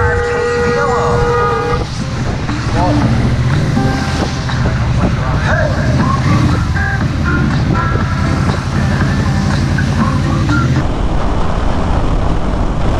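A motorcycle engine rumbles steadily at speed.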